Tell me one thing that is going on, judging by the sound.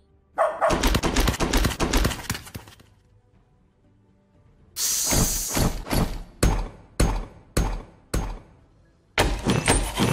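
Quick bursts of hammering and clattering play from a game.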